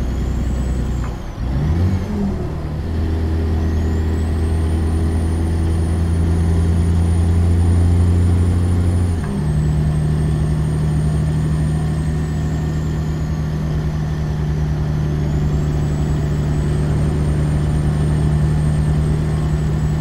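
A truck engine drones steadily, shifting gear now and then.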